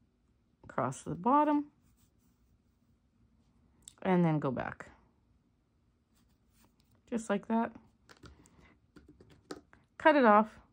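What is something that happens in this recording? A needle softly pulls yarn through knitted stitches.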